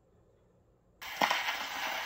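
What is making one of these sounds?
A gramophone needle drops onto a record with a scratchy thud.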